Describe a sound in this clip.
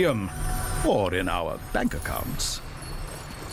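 A wooden chest creaks open with a bright shimmering chime.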